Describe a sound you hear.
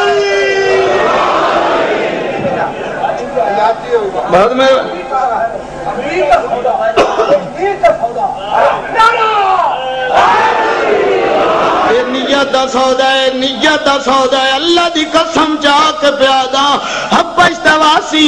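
A man speaks forcefully and with passion through a microphone.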